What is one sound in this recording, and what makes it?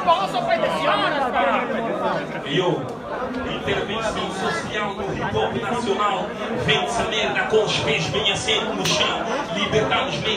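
A second young man raps into a microphone through loudspeakers.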